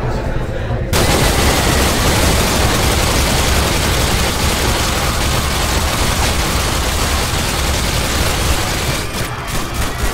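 A machine gun fires long, rapid bursts in a large echoing hall.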